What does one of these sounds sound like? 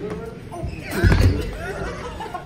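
A rubber weight plate thuds onto a floor.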